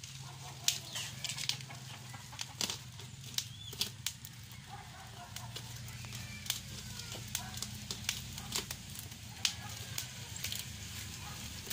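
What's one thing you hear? Scissors snip and crunch through cardboard.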